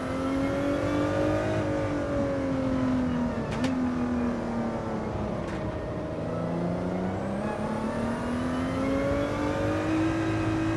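A racing car engine roars, its pitch falling and rising with gear shifts.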